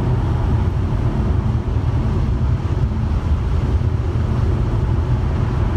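Tyres rumble low and steadily on the road.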